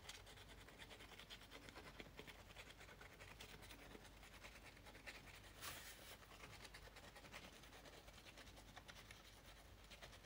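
A glue stick rubs across paper.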